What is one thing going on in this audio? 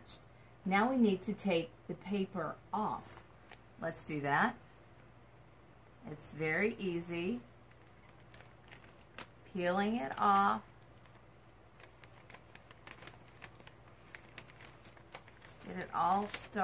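Paper crinkles and rustles in hands.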